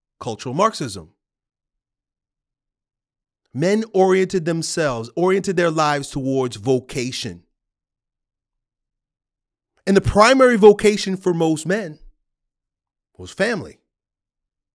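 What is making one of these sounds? A man speaks calmly and clearly into a close microphone, in short bursts with pauses.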